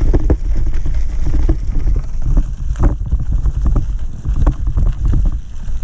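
Bicycle tyres rattle and crunch over a rough dirt trail.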